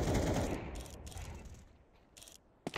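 A sniper rifle fires a loud shot that rings out and fades.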